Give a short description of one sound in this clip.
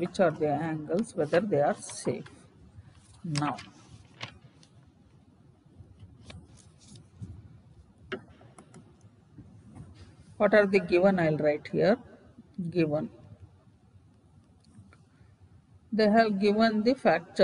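A woman speaks calmly in short phrases, heard through a microphone.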